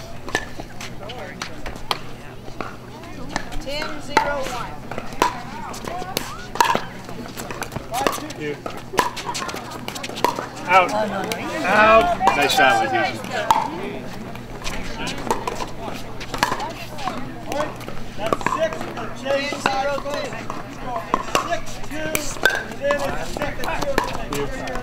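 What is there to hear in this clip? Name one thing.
Paddles hit a plastic ball with sharp, hollow pops in an echoing hall.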